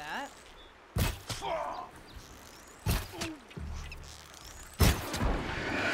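A bow twangs as an arrow is shot.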